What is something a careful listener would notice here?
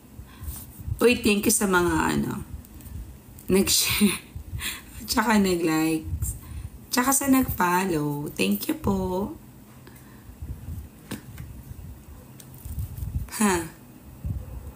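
A woman speaks calmly and closely into a phone microphone.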